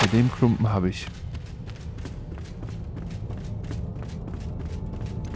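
Footsteps thud steadily on wooden steps.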